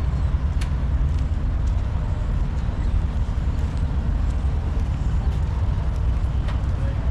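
Wind rumbles and buffets steadily outdoors.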